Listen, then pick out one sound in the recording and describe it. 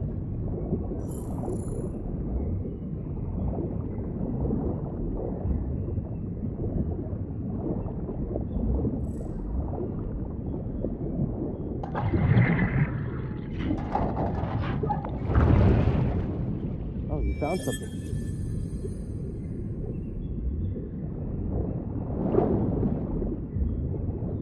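Water churns with a deep, muffled underwater rumble.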